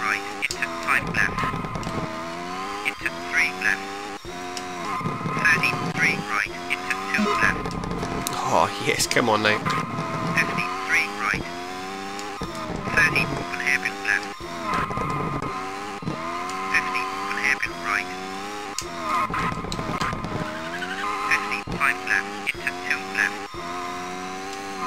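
A racing car engine revs high and drops briefly with each gear change.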